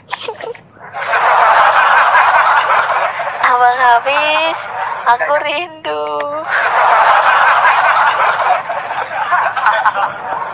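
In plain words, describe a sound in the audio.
A young woman laughs loudly over an online call.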